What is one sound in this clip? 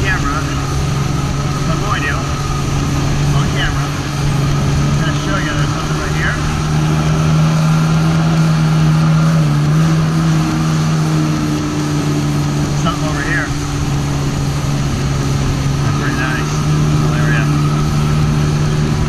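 Water sprays and splashes behind a jet ski.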